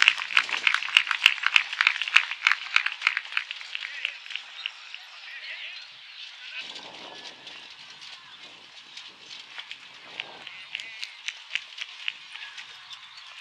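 Horse hooves clop at a quick trot.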